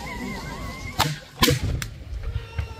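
A cannon fires with a loud boom that echoes off the hills.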